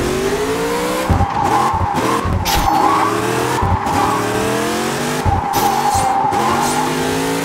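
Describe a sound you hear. A car engine revs high and climbs through the gears.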